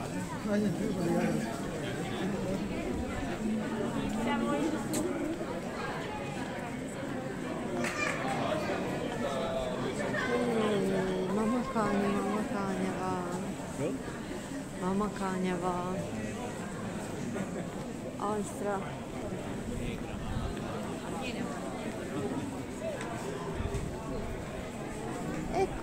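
A crowd of men and women chatter and talk nearby, outdoors.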